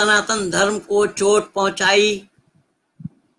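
An elderly man sings close to a microphone.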